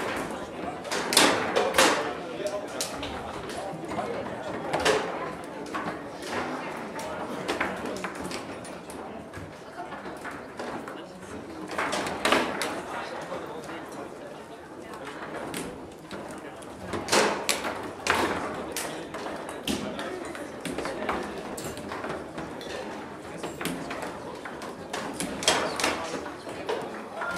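The ball of a table football game cracks against the rods and the table's walls in sharp knocks.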